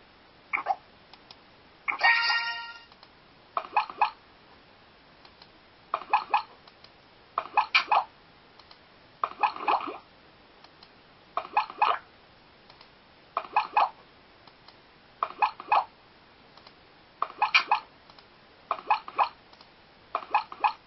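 A computer game plays short bursts of chiming sound effects at a steady pace.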